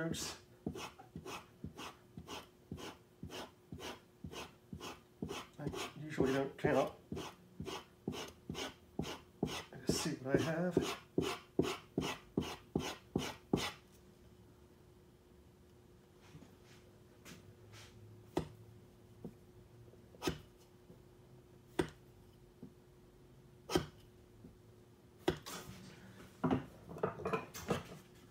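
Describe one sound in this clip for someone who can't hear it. A chisel scrapes back and forth on a wet water stone.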